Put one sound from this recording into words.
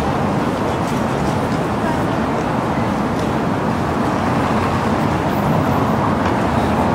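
A car drives slowly along the street.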